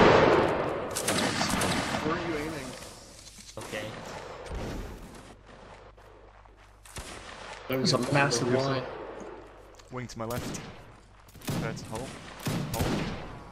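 Muskets fire in loud, sharp cracks.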